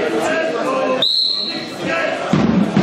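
A referee blows a sharp whistle in a large echoing hall.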